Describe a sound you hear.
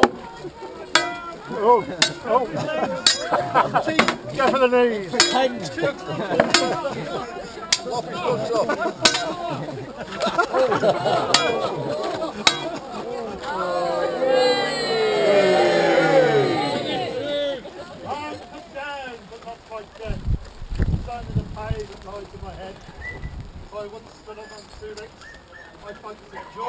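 A crowd of men and women chatters and murmurs outdoors.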